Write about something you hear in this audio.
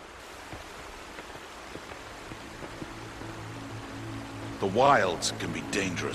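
A stream of water babbles over rocks.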